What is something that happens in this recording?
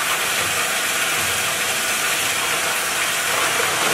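A plastic pipe rattles and grinds as it is fed into a crusher machine.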